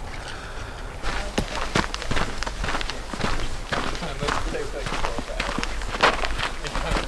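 Footsteps crunch on a gravel trail outdoors.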